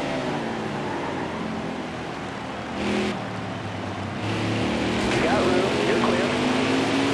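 Race car engines roar at high speed.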